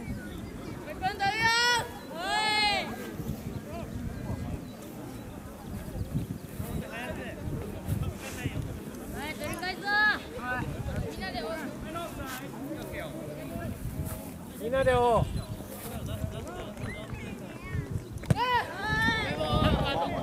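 Young women shout and call out loudly across an open field outdoors.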